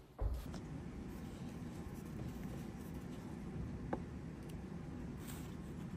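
A paper cup is lifted and set down on a table.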